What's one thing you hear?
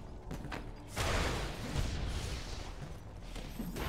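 Small figures clash in a fight, with whooshing spell blasts and hits.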